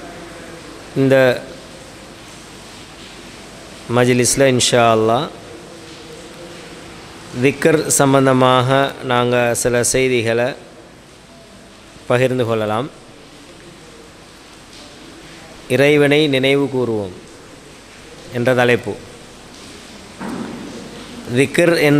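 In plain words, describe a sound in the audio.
A man speaks slowly and calmly into a microphone, heard through a loudspeaker with a slight echo, in short phrases with pauses.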